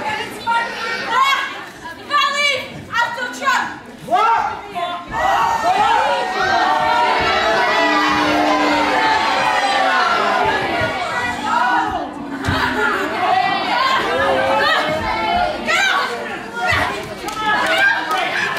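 A crowd of adults and children chatters and cheers nearby in a large echoing hall.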